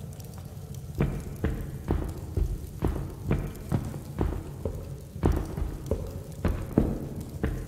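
Heavy footsteps thud steadily across a wooden floor.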